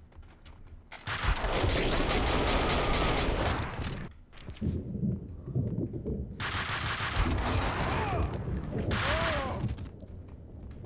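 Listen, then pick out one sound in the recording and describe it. Gunfire rattles in rapid, loud bursts.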